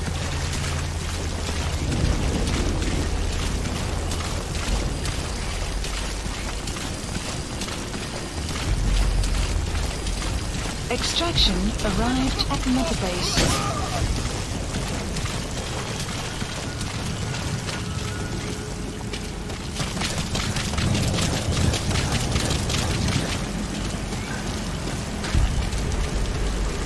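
A heavy armoured vehicle's engine rumbles low and steadily.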